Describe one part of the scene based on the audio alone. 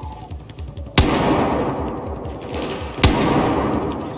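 A rifle fires loud booming shots that echo away.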